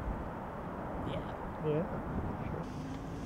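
A young man speaks briefly up close.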